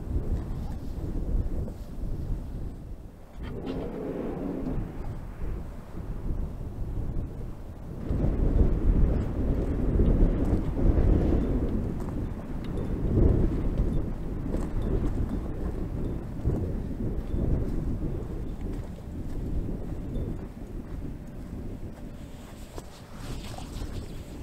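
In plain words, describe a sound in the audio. Wind blows steadily across open ground.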